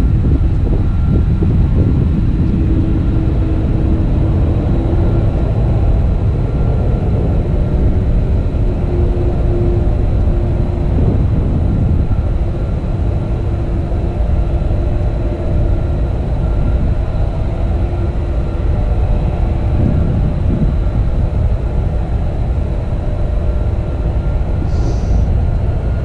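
Wind blows hard across open ground outdoors.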